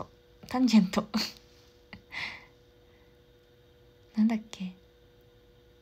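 A young woman speaks softly and cheerfully close to the microphone.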